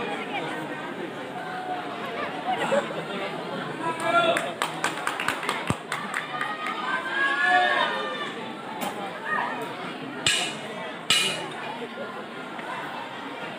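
A large crowd chatters and calls out loudly outdoors.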